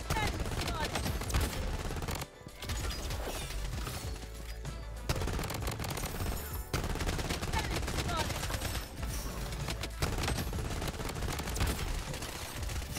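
Gunfire crackles rapidly from a video game.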